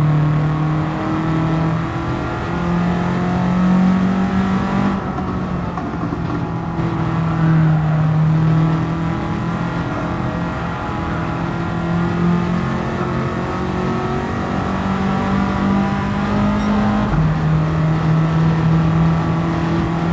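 A racing car engine roars steadily, its pitch rising and then dropping sharply with each gear change.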